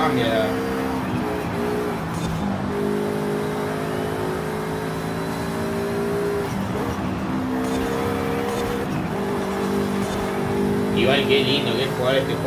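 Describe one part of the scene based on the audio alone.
A car engine roars steadily, dropping in pitch at each gear change and then climbing again.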